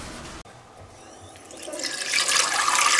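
Water runs from a tap into a pot.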